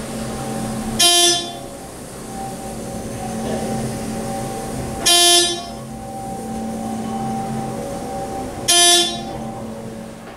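An elevator chime dings at each floor it passes.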